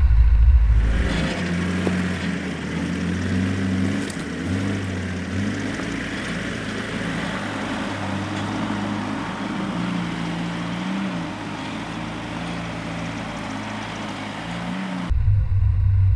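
Tyres crunch over loose rocks.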